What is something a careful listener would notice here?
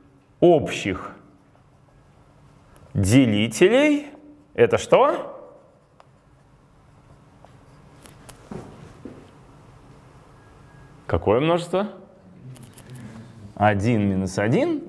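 A man speaks calmly, close by, in short bursts with echo.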